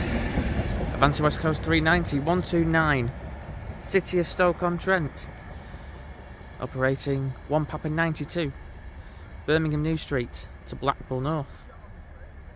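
An electric high-speed passenger train sounds its two-tone horn several times.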